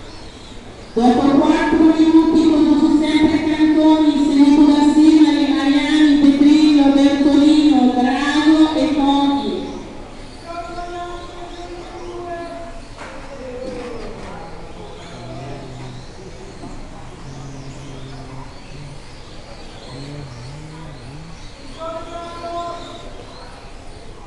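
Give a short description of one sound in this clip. Small remote-controlled model cars whine loudly as they speed about.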